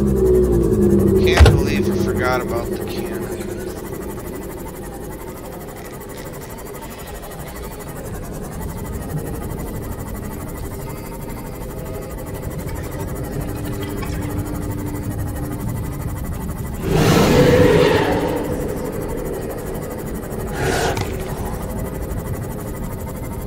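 A small submarine's engine hums steadily underwater.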